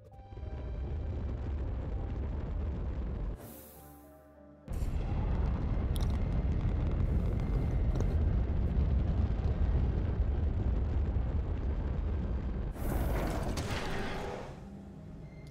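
A spacecraft engine rumbles loudly as it descends.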